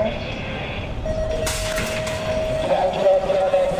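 A starting gate signal beeps with a steady electronic tone.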